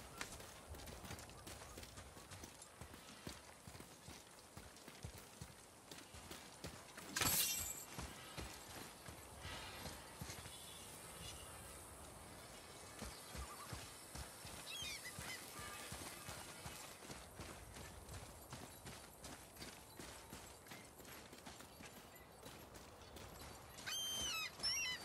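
Heavy footsteps tread steadily over grass and gravel.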